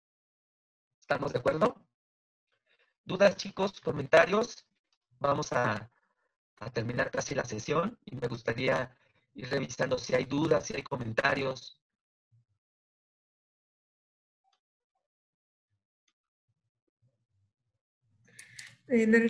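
A woman speaks calmly through a microphone, in short bursts with pauses.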